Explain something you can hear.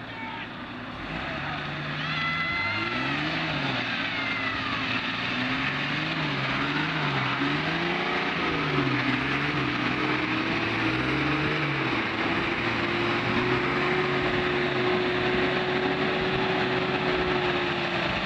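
An engine revs hard and strains under load.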